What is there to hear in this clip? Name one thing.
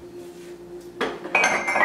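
A cupboard door opens and dishes clatter.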